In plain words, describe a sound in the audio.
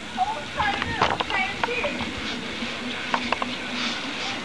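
A boy bounces on a trampoline with springy thumps.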